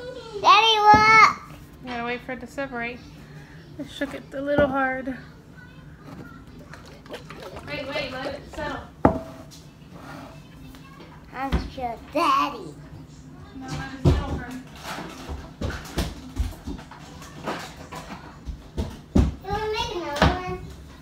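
A young boy talks and laughs excitedly close by.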